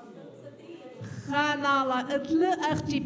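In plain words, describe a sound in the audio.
A middle-aged woman speaks warmly into a microphone.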